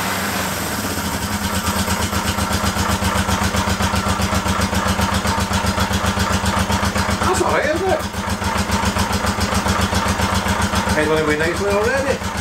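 A motorcycle engine starts and idles with a steady rapid putter.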